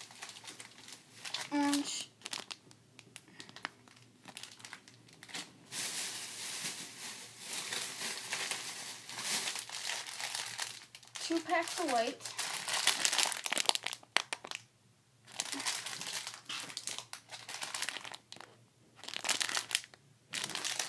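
Plastic packets crinkle and rustle as they are handled up close.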